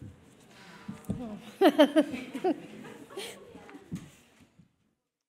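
A woman laughs softly near a microphone.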